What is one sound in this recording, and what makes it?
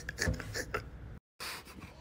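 A hand knocks on a door.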